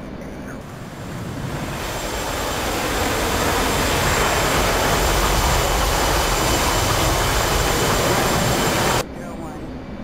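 A fighter jet's engine roars loudly, swelling up and holding.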